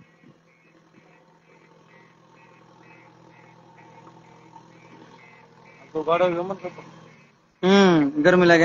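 A digger's engine rumbles steadily nearby.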